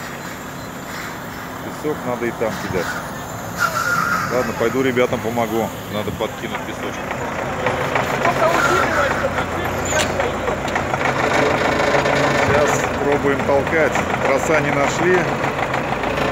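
A heavy engine idles with a low rumble.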